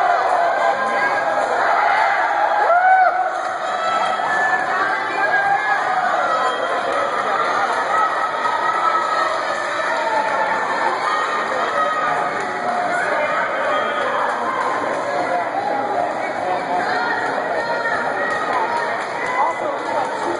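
A crowd of spectators cheers and shouts, echoing in a large indoor hall.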